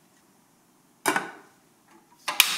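A ceramic lid clinks onto a pot.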